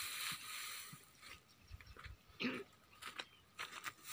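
Footsteps crunch on dry grass.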